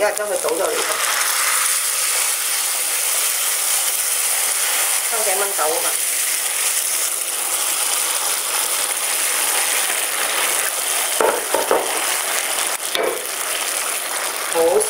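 Liquid sizzles and bubbles steadily in a hot pan.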